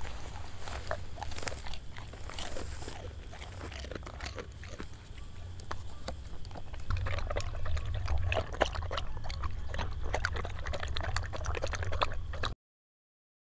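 A dog laps water noisily from a bowl.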